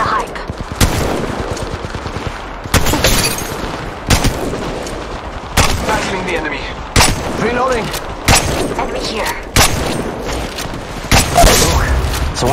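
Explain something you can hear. Gunshots ring out in short bursts, with loud sharp cracks.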